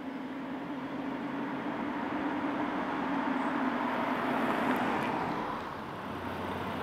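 A car engine hums as a car drives up and passes close by.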